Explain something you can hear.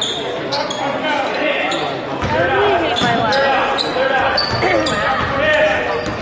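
A crowd of spectators talks and cheers in a large echoing hall.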